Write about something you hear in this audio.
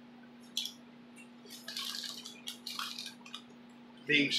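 A crisp bag rustles and crinkles.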